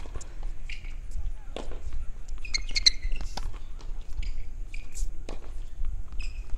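Tennis balls are struck with rackets and bounce on a hard court.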